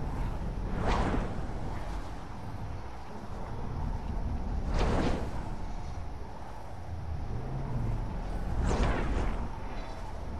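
A loud whoosh sweeps by every few seconds.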